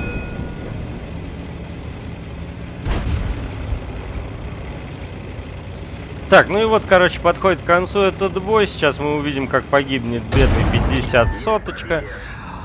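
A tank engine rumbles low and steadily as the tank drives.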